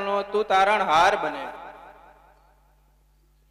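A man speaks loudly into a microphone over loudspeakers.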